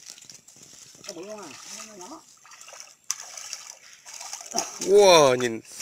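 A fish splashes and thrashes in shallow water.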